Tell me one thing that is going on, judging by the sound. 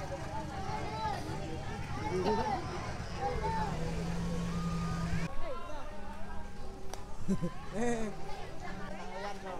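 Several young men and women chat nearby outdoors.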